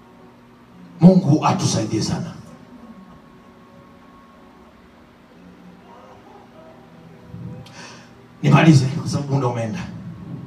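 A man preaches loudly and with passion into a microphone, in short bursts with pauses.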